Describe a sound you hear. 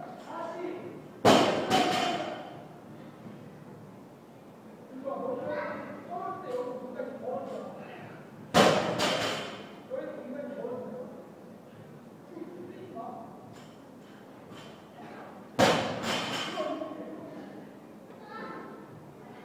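Men talk in the background of an echoing hall.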